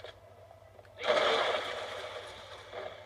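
A loud gunshot blasts from a video game and rumbles away.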